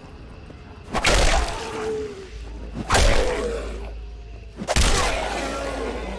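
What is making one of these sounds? A creature snarls and shrieks up close.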